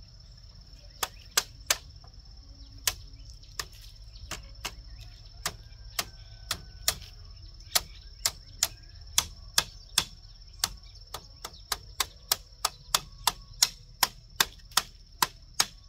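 A blade chops sharply into bamboo again and again.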